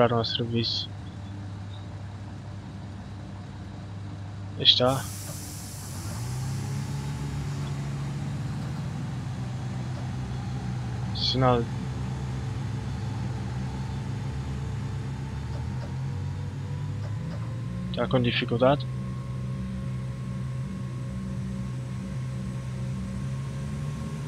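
A train engine hums low and steady, growing louder as the train picks up speed.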